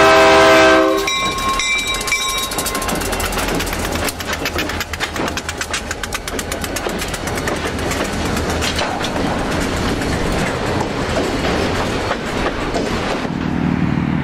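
Train wheels clatter rhythmically over the rails.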